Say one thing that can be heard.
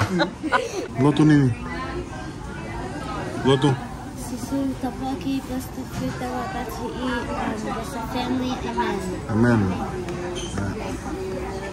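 Young girls talk and giggle close by.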